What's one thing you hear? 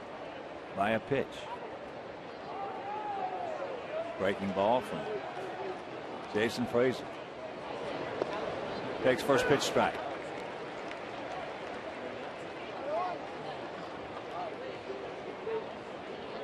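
A stadium crowd murmurs steadily outdoors.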